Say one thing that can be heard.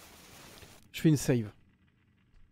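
A man speaks briefly and close to a microphone.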